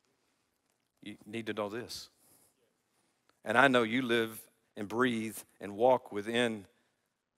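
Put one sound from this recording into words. An older man speaks with emphasis through a microphone.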